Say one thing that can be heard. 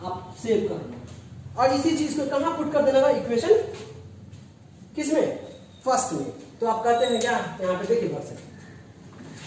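A man speaks clearly in a lecturing tone, close by.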